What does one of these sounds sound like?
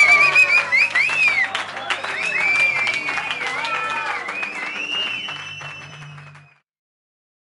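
An electric guitar strums along with the band.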